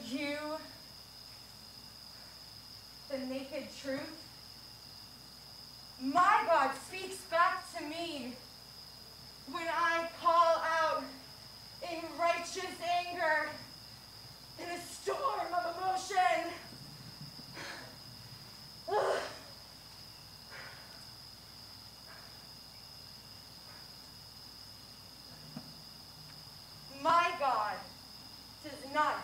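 A woman sings out in short, wavering phrases with pauses between them.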